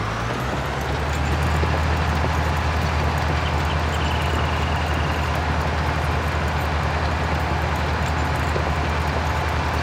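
A cultivator scrapes and rattles through the soil.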